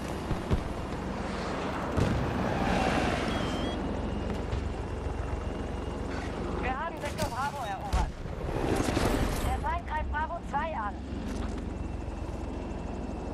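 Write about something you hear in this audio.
Helicopter rotors thump and roar steadily.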